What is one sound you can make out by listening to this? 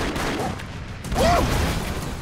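A loud explosion booms in a video game.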